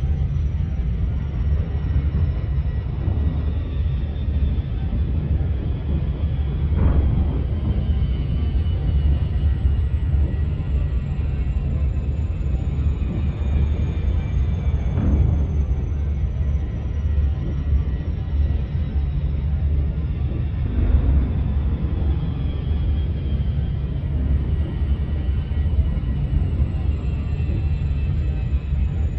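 A spaceship engine hums with a deep, steady drone.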